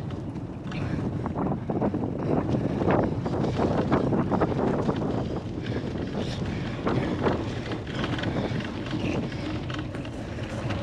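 A bicycle's knobby tyres roll and rumble over bumpy grass.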